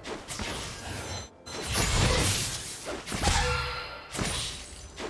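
Video game combat effects crackle and burst in quick succession.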